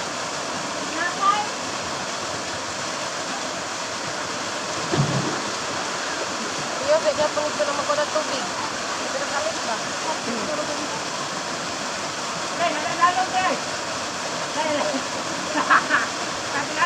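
Young people talk and call out nearby over the waterfall.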